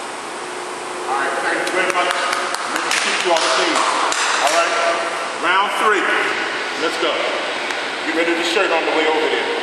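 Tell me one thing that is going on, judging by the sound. Several men talk loudly and excitedly nearby.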